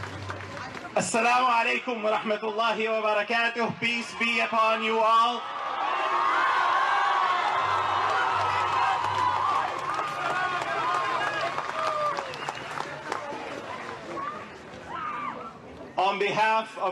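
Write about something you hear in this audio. A man speaks loudly into a microphone through a loudspeaker outdoors.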